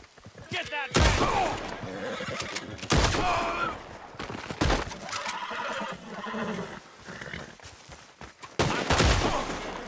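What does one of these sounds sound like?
Gunshots ring out loudly, one at a time.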